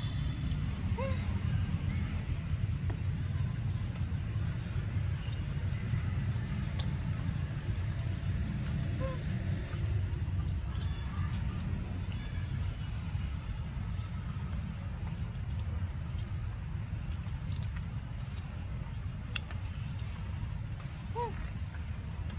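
A young monkey squeaks softly now and then.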